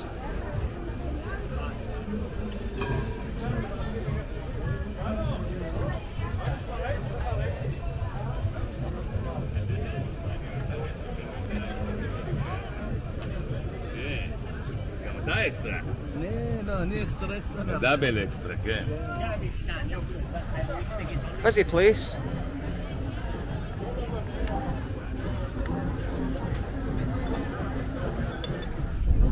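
A crowd of people chatters at a busy outdoor market.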